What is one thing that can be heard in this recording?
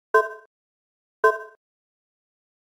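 Menu buttons chime with short tones.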